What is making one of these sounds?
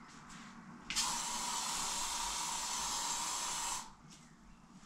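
An aerosol can hisses as it sprays.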